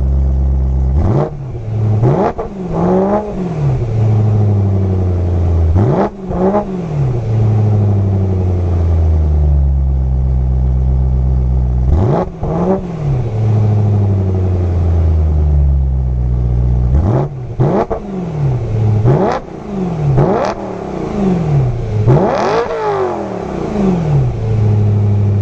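A car engine idles with a deep exhaust rumble and revs up sharply again and again.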